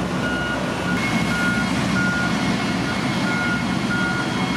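Heavy road rollers rumble with steady diesel engine drones.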